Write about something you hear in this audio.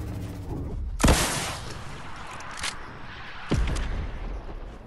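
A rocket launcher fires with a loud whoosh.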